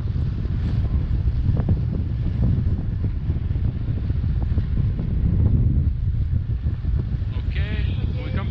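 Strong wind rushes and buffets against a microphone outdoors.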